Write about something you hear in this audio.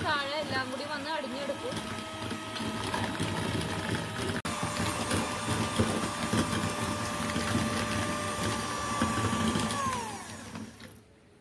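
An electric hand mixer whirs steadily, then winds down.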